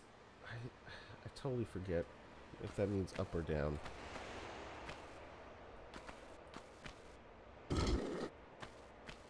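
Footsteps patter on a stone floor.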